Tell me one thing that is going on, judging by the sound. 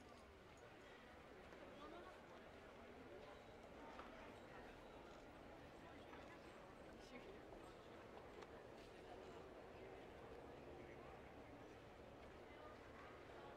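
A crowd of people chatter outdoors around the listener.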